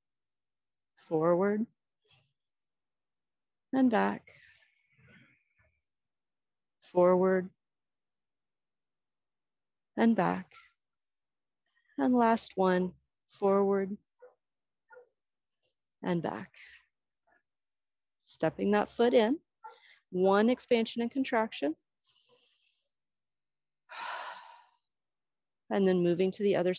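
A woman speaks calmly and clearly into a close microphone, in short bursts with pauses.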